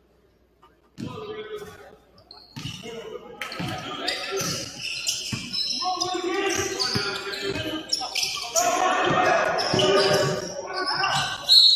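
A basketball bounces on a hard wooden floor in a large echoing gym.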